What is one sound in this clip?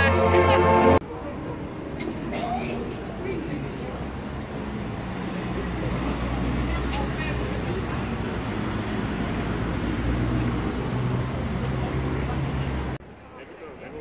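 A crowd murmurs in a busy street.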